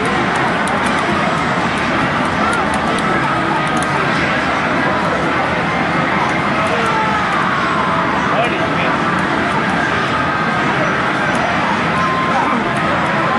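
Fighting game sound effects of punches and blasts play loudly from a television.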